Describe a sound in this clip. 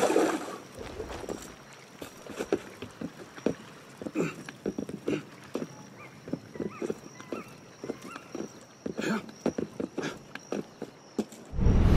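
Hands and feet knock and scrape on stone while climbing.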